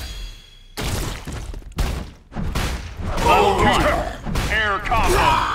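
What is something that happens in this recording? Heavy punches and impacts thud and crash in quick bursts.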